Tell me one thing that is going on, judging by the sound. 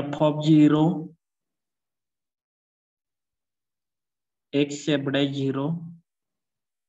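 A man explains calmly, close to a microphone.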